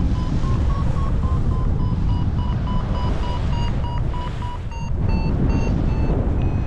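A flight instrument beeps rapidly in short, high pitched repeated tones.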